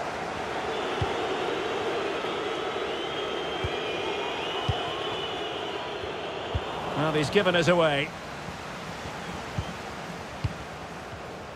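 A football is kicked with dull thuds now and then.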